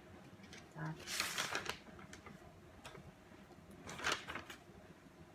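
Paper rustles as a sheet is turned over.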